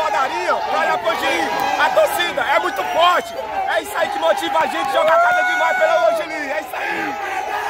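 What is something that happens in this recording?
A young man speaks excitedly close by.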